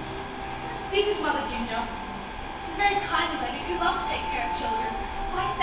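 A child speaks out loudly from a distance in an echoing hall.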